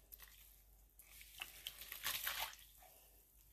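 Wet yarn splashes and drips into a pot of water.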